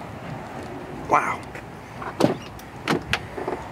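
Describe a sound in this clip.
A vehicle door clicks open.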